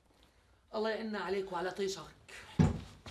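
A man speaks calmly indoors.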